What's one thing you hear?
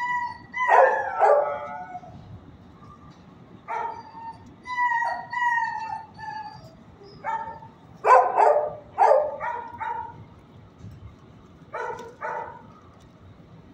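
A dog whimpers and whines close by.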